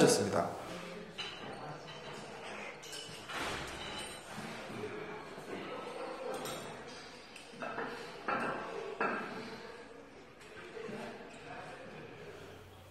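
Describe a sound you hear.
A middle-aged man speaks quietly at a distance in an echoing room.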